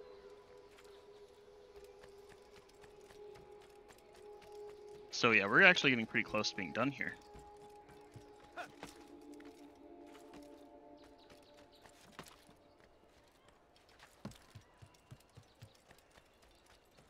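Footsteps patter quickly on hard rooftops.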